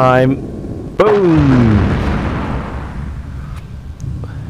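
A missile explodes with a loud boom that rumbles away.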